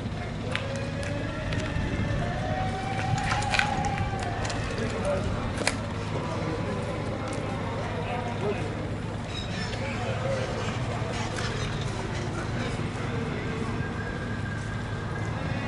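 A crowd of men and women murmur quietly outdoors.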